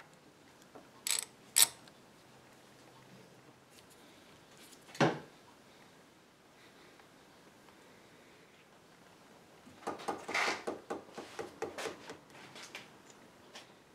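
Metal bar clamps clank as they are tightened and adjusted.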